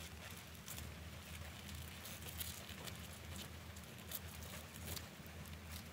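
Dry coconut fibre rustles softly as gloved hands press and pull it.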